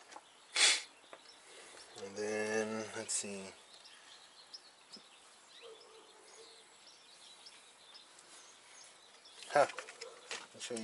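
Metal engine parts click and clank under hands.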